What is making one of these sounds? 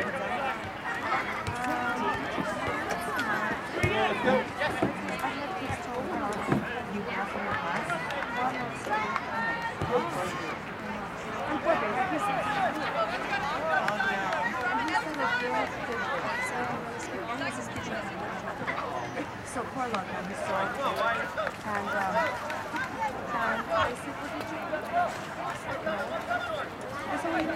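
Spectators nearby talk and call out outdoors.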